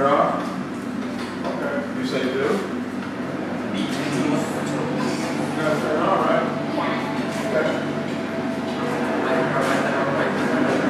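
Several adults and children chat in a murmur of overlapping voices nearby.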